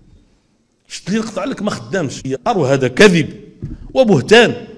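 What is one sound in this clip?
An elderly man speaks forcefully into a microphone, heard through a loudspeaker.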